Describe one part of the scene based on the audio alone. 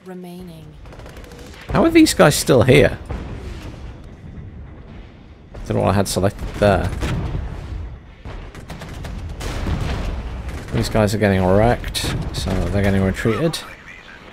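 Explosions boom and gunfire crackles in a battle.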